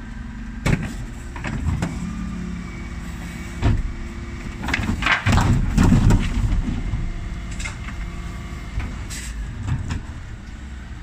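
A bin lift whirs and clanks as it raises and tips wheelie bins.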